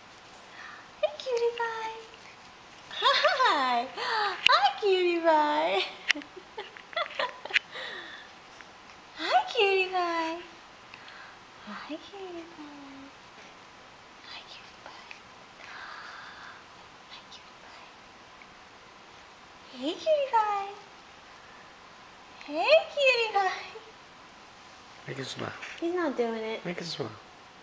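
A baby coos and babbles softly up close.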